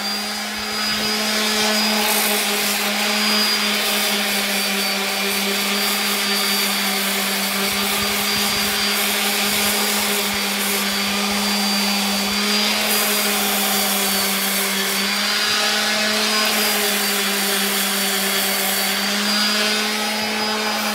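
An electric sander whirs steadily against wood, close by.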